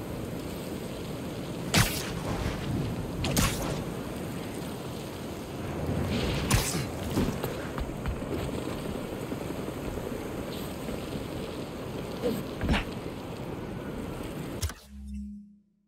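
Wind blows steadily, high and open.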